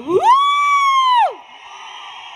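A woman sings a long, held note through a microphone.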